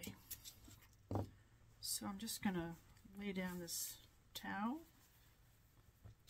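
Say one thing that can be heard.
A cloth flaps as it is shaken out.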